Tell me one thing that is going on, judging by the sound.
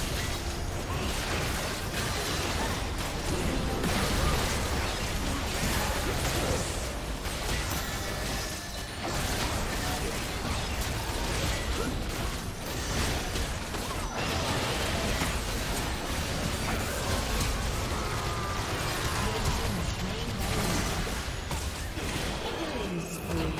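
Game spell effects whoosh, crackle and burst during a battle.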